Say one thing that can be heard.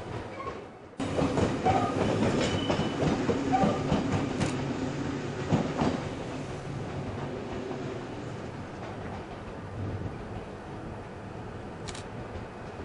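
A second train rolls in on the tracks.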